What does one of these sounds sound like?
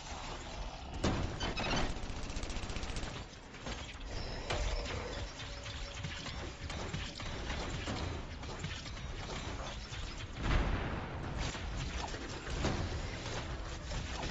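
Explosions boom with deep rumbles.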